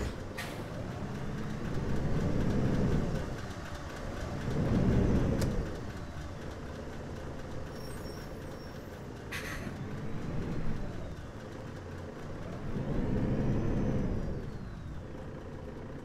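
A bus engine revs up and down as the bus pulls away.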